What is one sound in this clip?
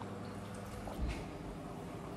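A cup is set down on a table with a dull knock.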